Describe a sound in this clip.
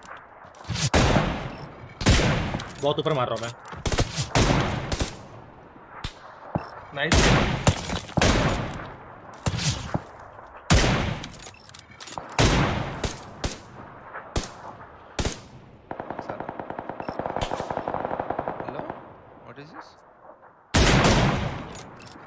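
A sniper rifle fires sharp shots that echo.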